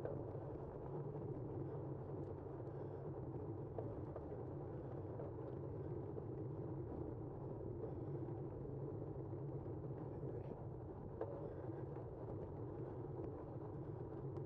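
Tyres roll steadily over smooth pavement.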